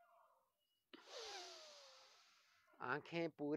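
A man breathes out forcefully.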